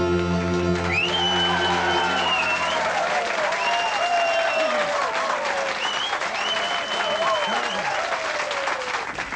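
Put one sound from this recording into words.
People in a crowd whistle and cheer.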